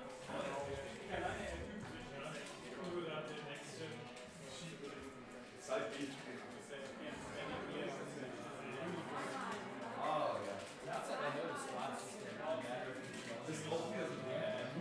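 Young men chat and laugh casually nearby.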